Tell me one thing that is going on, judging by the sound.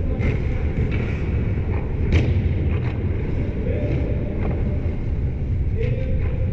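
Ice skates scrape and glide across ice in a large echoing rink.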